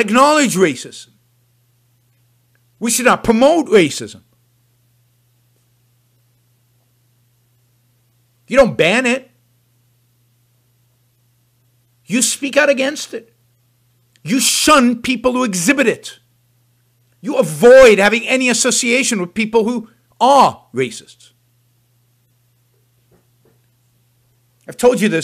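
An elderly man talks with animation into a close microphone, in short bursts with pauses.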